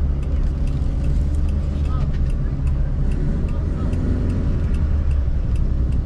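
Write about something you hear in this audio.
A man talks loudly outside the car window.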